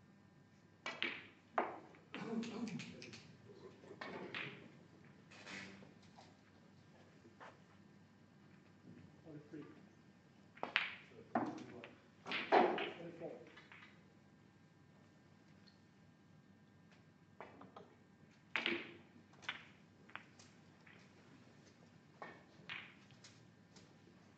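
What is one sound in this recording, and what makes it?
Snooker balls click against each other.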